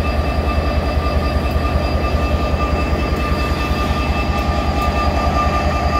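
A diesel locomotive engine throbs with a steady, low drone.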